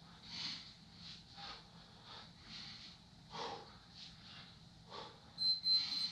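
A man breathes out sharply with each kick.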